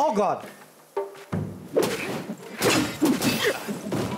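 Swords clash in a fight.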